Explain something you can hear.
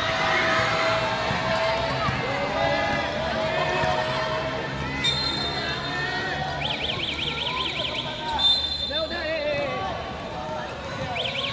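A crowd of children chatters and shouts in a large echoing hall.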